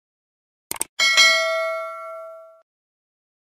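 A bell chimes brightly and rings out.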